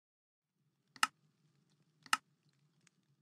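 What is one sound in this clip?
Sharp game interface clicks sound a few times.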